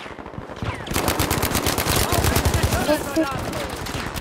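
A submachine gun fires rapid bursts at close range.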